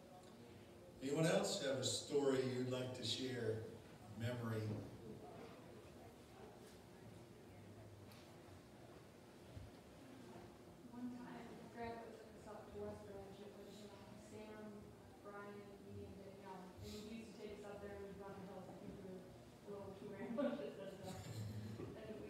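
A man speaks calmly through a loudspeaker in an echoing hall.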